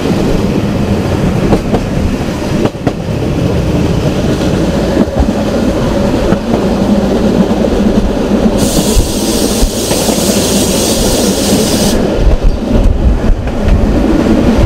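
A train rumbles steadily along the tracks, with wheels clacking now and then.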